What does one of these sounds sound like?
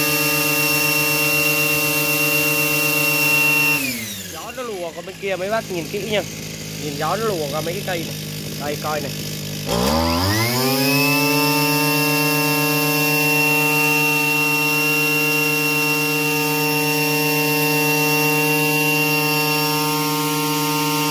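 A small trimmer engine whines steadily at high speed, winds down for a few seconds, then revs back up.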